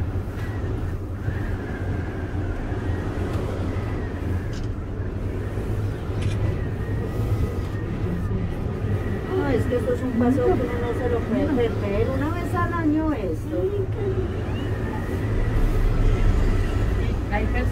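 A cable car cabin rumbles and hums steadily as it travels along its cable.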